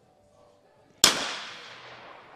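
A shotgun fires a single loud shot outdoors, and the bang echoes away.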